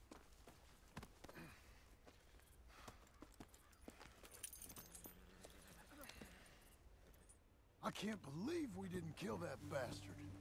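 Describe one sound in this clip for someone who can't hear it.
Horse hooves thud softly on the ground.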